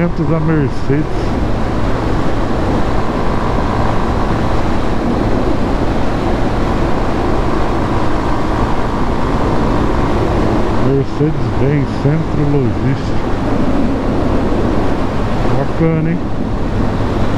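A motorcycle engine revs up and down as the rider changes gear.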